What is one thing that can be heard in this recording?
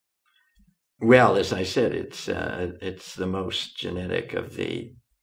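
An elderly man speaks calmly and thoughtfully, close to a microphone.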